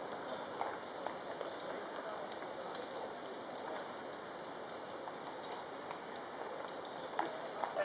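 Heavy wooden wheels of a gun carriage rumble over the road.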